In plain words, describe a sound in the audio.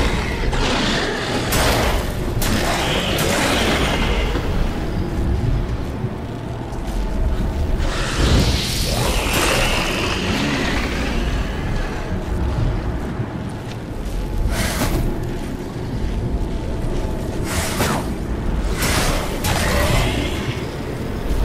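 Magic lightning crackles and booms in bursts.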